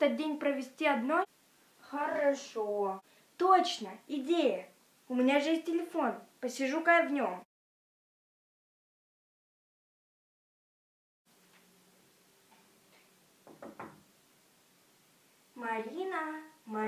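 A young girl talks animatedly close by.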